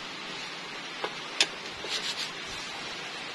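Metal tools clink and scrape against an engine casing.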